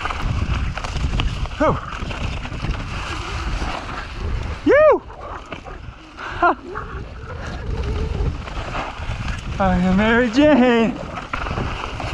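Bike tyres crunch and skid over a loose dirt trail.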